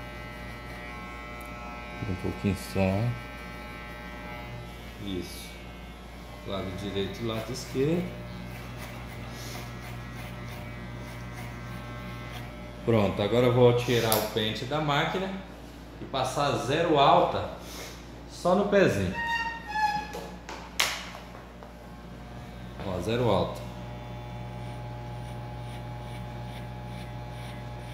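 Electric hair clippers buzz steadily.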